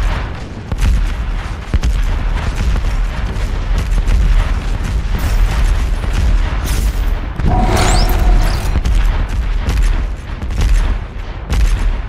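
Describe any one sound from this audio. A gun fires rapid shots with loud bangs.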